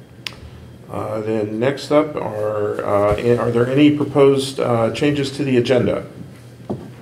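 A middle-aged man speaks through a microphone.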